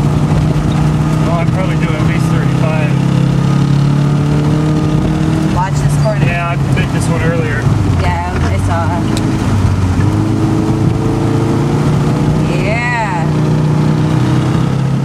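A flat-four car engine drones, heard from inside the car.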